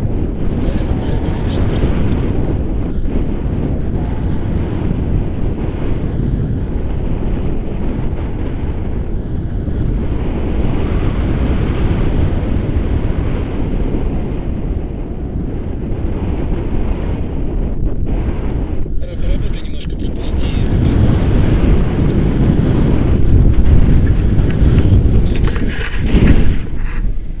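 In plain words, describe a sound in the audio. Wind rushes loudly and steadily, roaring stronger toward the end.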